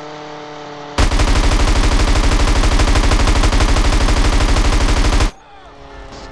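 A plane's machine guns fire in a rapid, rattling burst.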